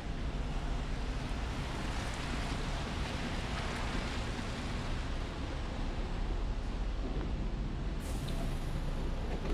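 Traffic rumbles along a wet street outdoors.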